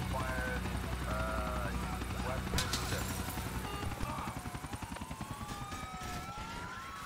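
A helicopter's rotor thumps and drones loudly.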